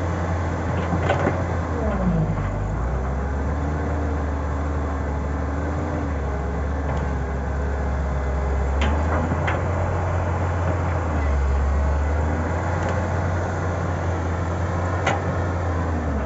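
An excavator's bucket scrapes and thuds into dirt.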